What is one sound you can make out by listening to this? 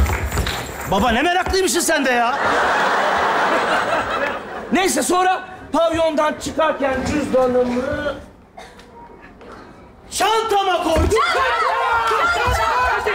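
A man shouts with animation on a stage.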